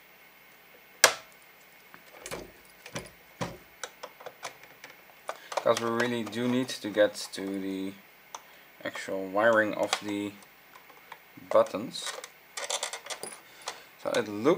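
Small metal tools click and scrape against a plastic casing.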